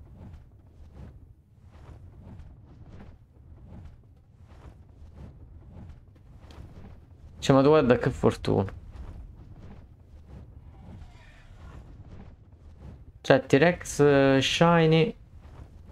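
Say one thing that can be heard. Large wings flap in a steady, even rhythm.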